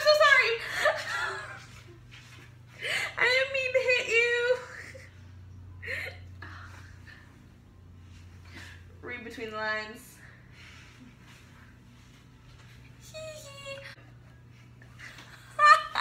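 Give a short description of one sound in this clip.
A young woman laughs close by.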